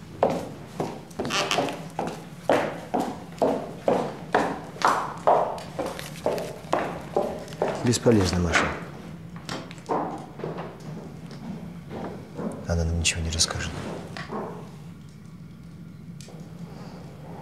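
A woman speaks softly, close by.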